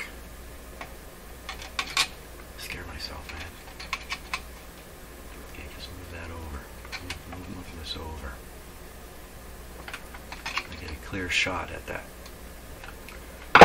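A screwdriver clicks and scrapes against metal parts.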